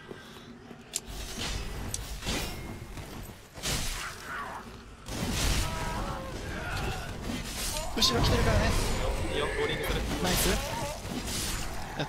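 Swords clash with sharp metallic hits in a fight.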